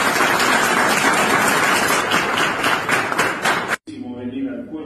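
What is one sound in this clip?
A crowd claps and cheers loudly.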